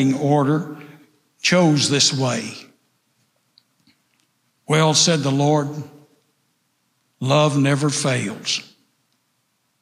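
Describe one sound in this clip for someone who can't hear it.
An elderly man speaks calmly into a microphone in phrases with pauses.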